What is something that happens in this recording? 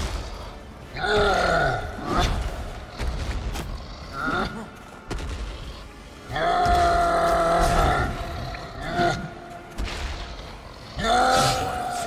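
A giant roars with deep, loud bellows.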